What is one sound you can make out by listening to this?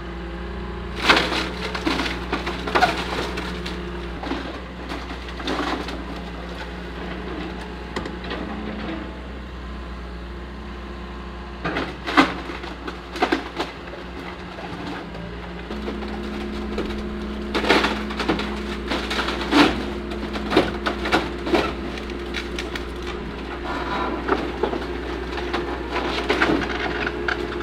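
Wooden roof beams crack and snap as an excavator tears them down.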